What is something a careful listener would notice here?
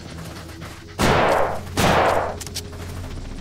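A rifle fires two loud shots close by.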